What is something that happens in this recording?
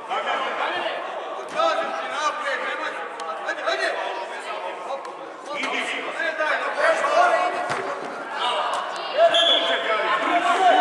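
Children shout to each other as they play football.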